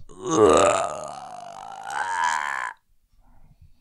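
A man laughs loudly into a microphone.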